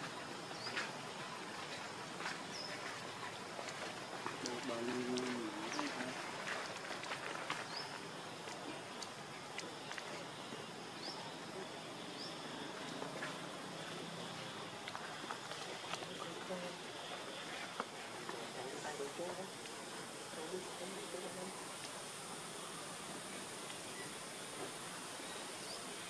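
Monkeys softly rustle and pick at each other's fur.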